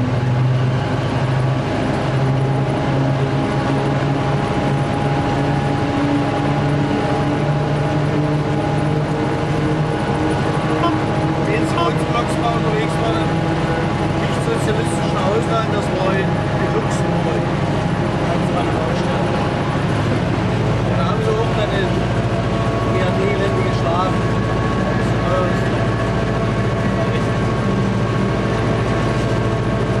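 Train wheels clatter and squeal over the rails and points.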